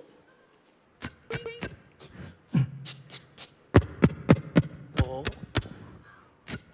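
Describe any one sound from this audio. A performer beatboxes into a microphone with sharp, rhythmic clicks and pops.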